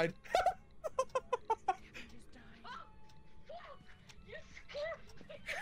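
A young woman laughs loudly into a microphone.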